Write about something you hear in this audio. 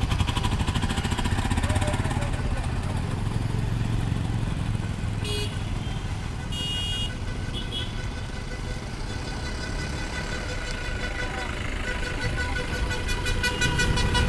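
A motorcycle engine idles nearby.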